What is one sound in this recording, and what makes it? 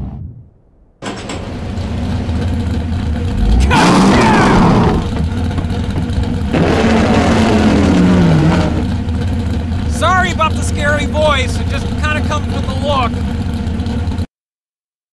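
A monster truck engine roars and revs loudly.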